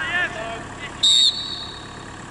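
A referee's whistle blows sharply once.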